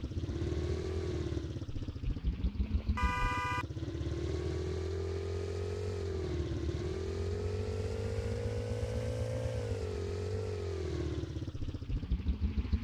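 A scooter engine hums and rises and falls in pitch as the rider speeds up and slows down.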